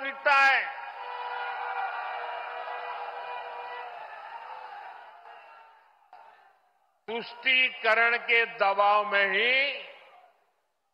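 A man speaks forcefully through a microphone and loudspeakers.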